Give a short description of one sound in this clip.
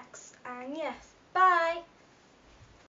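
A young girl speaks brightly and close by.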